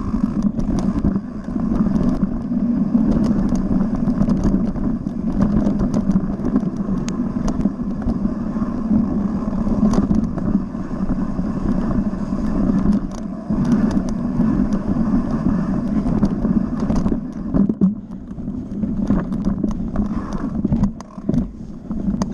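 Tyres rattle and thump over rough ground.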